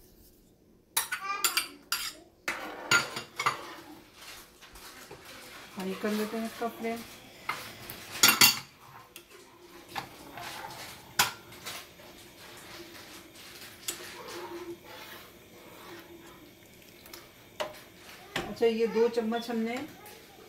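A ladle scrapes and clinks against a pan while stirring.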